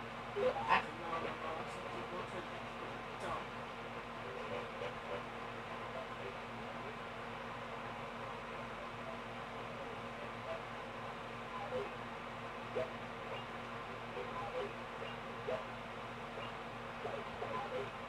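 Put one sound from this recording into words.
Video game music and sound effects play faintly through a television speaker.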